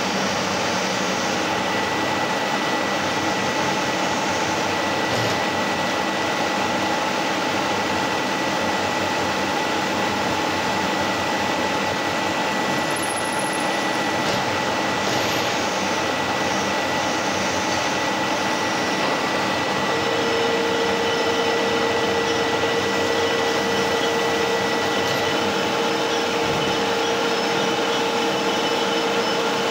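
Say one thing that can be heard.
A milling machine hums and whines steadily as a drill bit cuts into metal.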